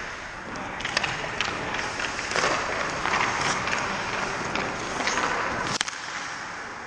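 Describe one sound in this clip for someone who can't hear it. A hockey stick clacks against a puck.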